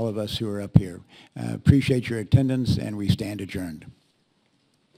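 An elderly man speaks into a microphone with animation.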